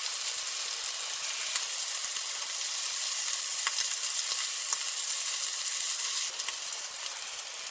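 Food sizzles and crackles steadily in a hot pan.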